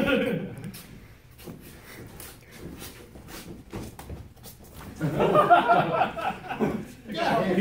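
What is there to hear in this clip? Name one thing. Bare feet shuffle and thump on a mat.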